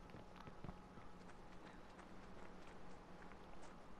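Footsteps walk over hard ground.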